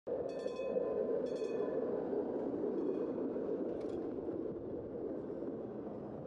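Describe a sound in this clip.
A streetcar rumbles past on its rails and fades away.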